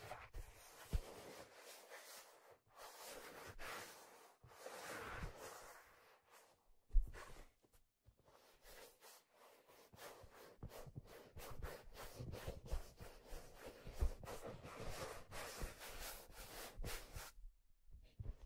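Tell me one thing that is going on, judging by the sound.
Fingers rub and scratch over a stiff leather hat close to a microphone.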